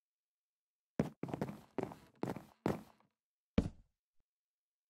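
Wooden blocks thud as they are placed, one after another.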